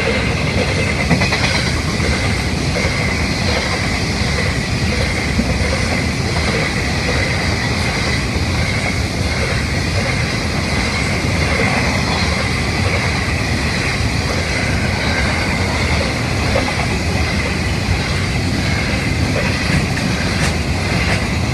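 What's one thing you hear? A level crossing bell rings steadily.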